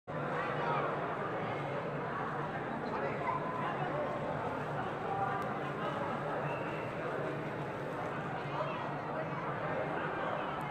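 A large crowd of children and adults chatters loudly in a big echoing hall.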